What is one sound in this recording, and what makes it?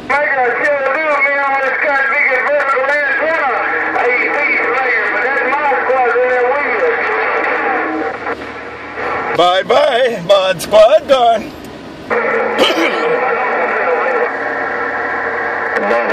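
A radio receiver plays a transmission through its small loudspeaker.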